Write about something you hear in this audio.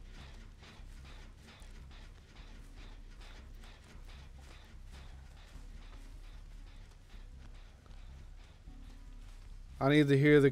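Footsteps crunch quickly through grass.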